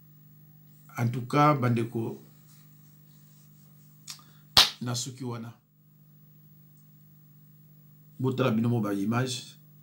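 A middle-aged man speaks calmly and closely into a microphone, in short bursts with pauses.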